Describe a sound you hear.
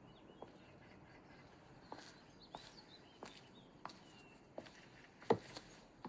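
Footsteps tap at an even pace on a hard path.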